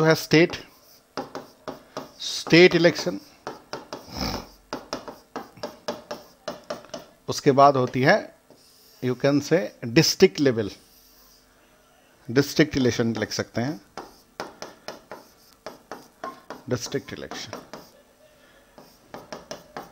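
A marker squeaks and taps on a board as a man writes.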